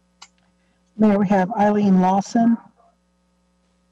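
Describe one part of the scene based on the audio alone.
A middle-aged woman speaks over an online call.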